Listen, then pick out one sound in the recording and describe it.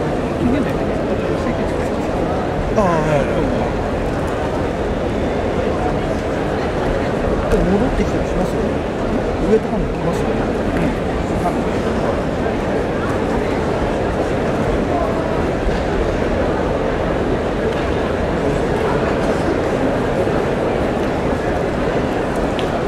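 Many voices of a crowd murmur and chatter in a large echoing hall.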